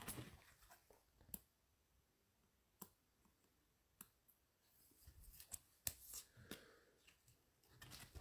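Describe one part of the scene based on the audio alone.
Gloved fingers slide a trading card out of a thin plastic sleeve with a faint crinkle.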